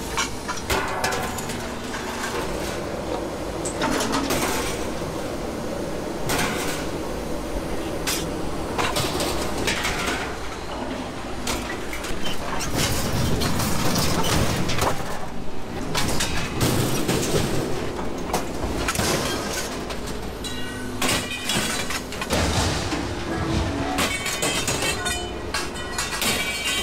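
Sheet metal clanks and scrapes.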